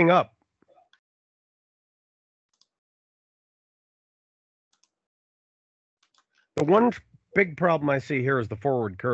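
A man speaks calmly into a microphone, close and clear.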